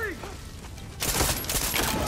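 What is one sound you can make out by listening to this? A rifle fires shots.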